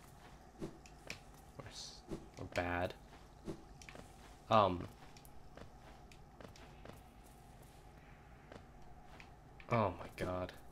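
Small, light footsteps patter on hard ground.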